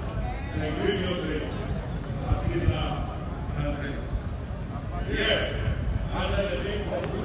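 A crowd of people talks outdoors in the distance.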